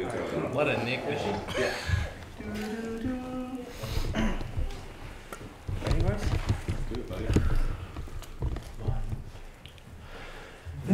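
A men's choir sings together indoors.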